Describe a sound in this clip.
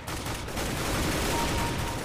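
A rifle fires a rapid burst.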